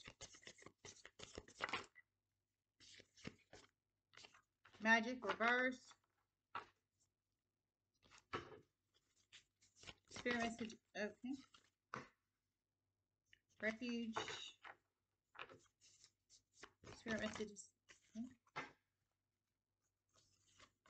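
Playing cards riffle and flap as they are shuffled close by.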